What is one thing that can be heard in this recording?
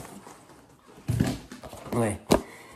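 A plastic box rattles in a man's hands.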